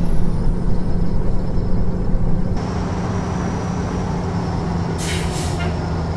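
A truck engine hums steadily at a low pitch.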